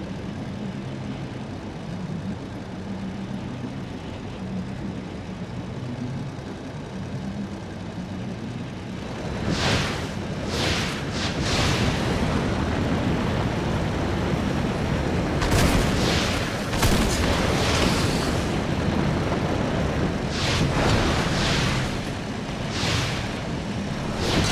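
A hovering vehicle's engine hums and whooshes steadily, growing louder partway through.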